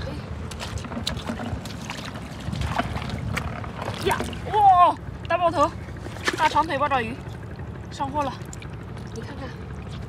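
Water splashes and sloshes around boots wading in a shallow pool.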